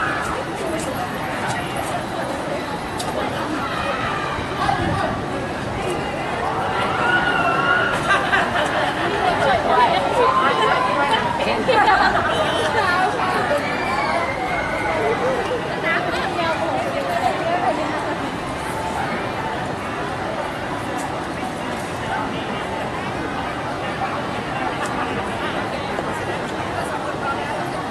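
A crowd of young women chatters and squeals excitedly close by, outdoors.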